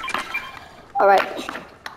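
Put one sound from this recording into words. A short chiming pickup sound rings out.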